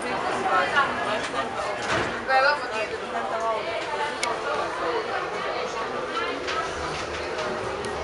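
Men and women talk nearby.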